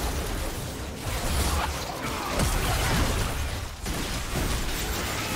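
Magic spells crackle and burst in a fast battle.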